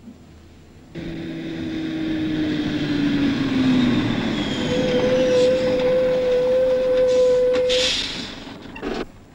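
A heavy truck engine roars as it approaches.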